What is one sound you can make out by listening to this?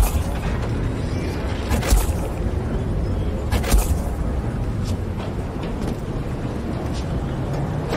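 Footsteps thump and land heavily on wooden planks.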